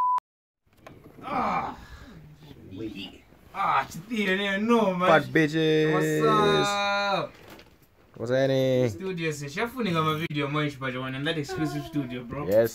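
A young man sings close to a microphone with a melodic voice.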